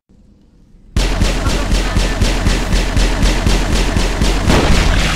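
A gun fires in rapid, steady bursts.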